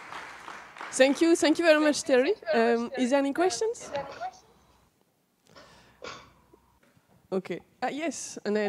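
A young woman speaks animatedly through a microphone.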